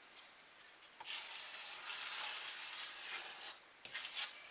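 A blade scrapes steadily across wood.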